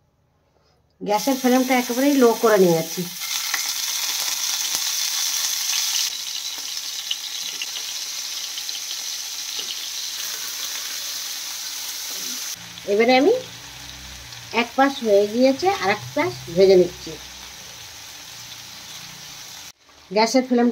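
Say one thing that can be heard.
Pieces of food sizzle and crackle in hot oil in a pan.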